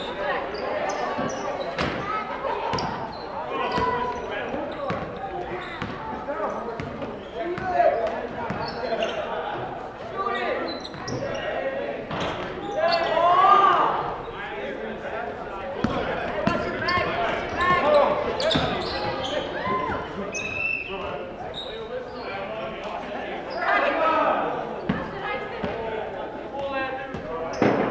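A crowd of spectators cheers and chatters.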